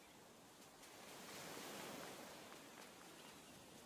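Water laps gently at a shore.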